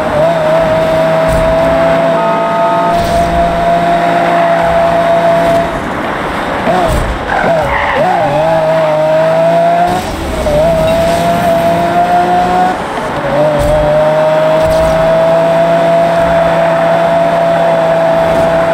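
A sports car engine roars at high revs, dipping and climbing as the car shifts and brakes.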